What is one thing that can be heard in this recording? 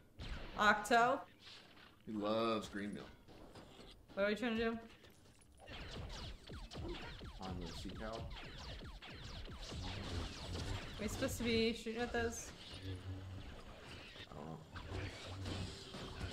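A young woman talks with animation, heard closely through a microphone.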